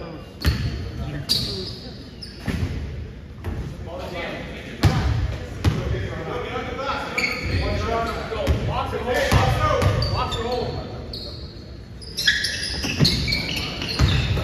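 A basketball bounces on a hard gym floor with echoing thuds.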